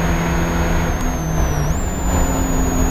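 A Spec Miata's engine drops in pitch as the driver brakes and shifts down for a corner.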